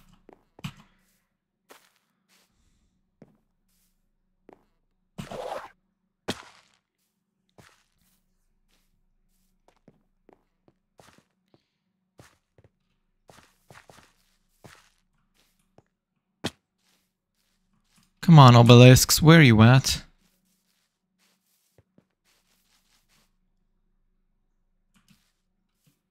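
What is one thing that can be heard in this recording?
Footsteps patter softly on grass and dirt.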